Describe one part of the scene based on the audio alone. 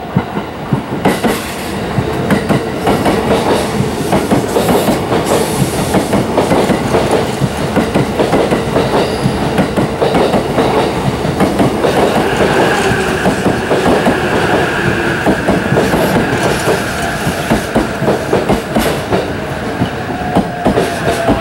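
A train rushes past close by, its wheels rattling and clattering over the rail joints.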